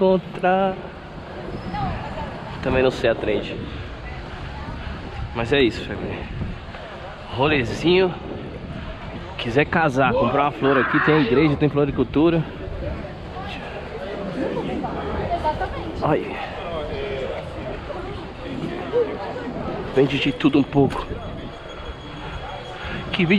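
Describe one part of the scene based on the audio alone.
Passing men and women chat casually nearby outdoors.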